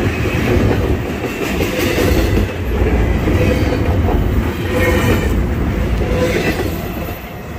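Steel wheels squeal faintly against the rails.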